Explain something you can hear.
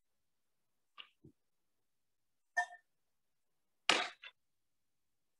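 A metal cup clinks a few times.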